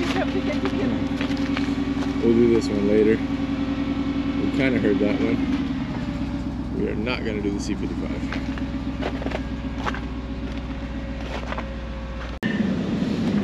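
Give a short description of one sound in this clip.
A car engine idles with a steady low hum.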